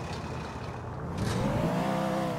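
A car thumps over a kerb.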